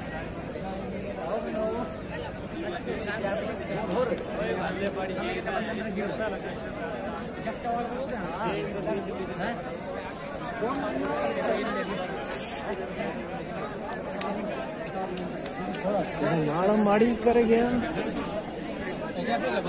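Young men talk nearby.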